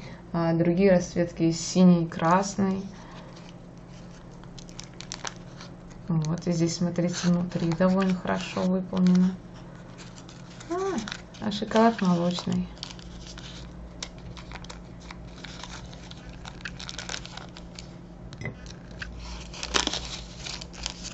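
A candy wrapper crinkles and rustles as it is unwrapped.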